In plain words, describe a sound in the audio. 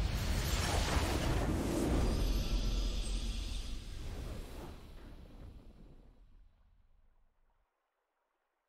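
A triumphant victory fanfare plays and fades away.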